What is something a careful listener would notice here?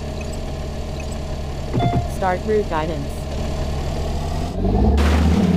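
A racing car engine idles with a low hum.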